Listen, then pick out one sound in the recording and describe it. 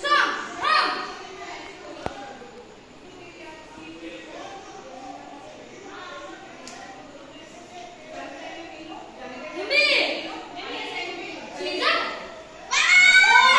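A young boy speaks and calls out instructions nearby.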